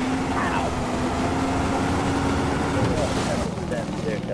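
A motorboat engine hums steadily, then cuts out.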